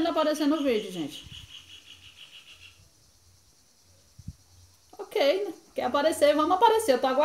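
A woman speaks calmly and close by, explaining with pauses.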